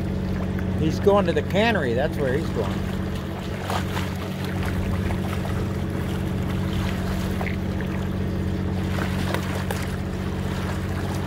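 Water splashes against the side of a boat.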